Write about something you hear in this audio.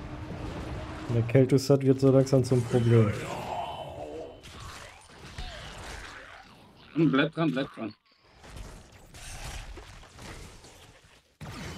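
Game battle effects whoosh and crackle.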